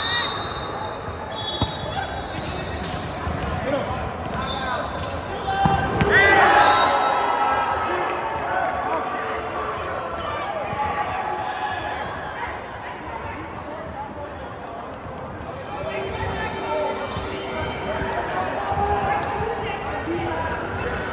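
Many people chatter and shout throughout a large echoing hall.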